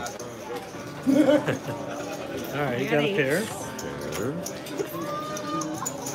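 Casino chips click together in a hand.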